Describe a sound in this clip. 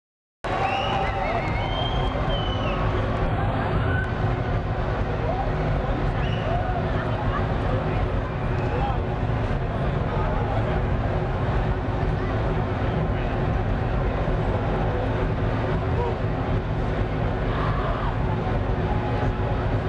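Loud electronic dance music plays with a heavy thumping bass beat.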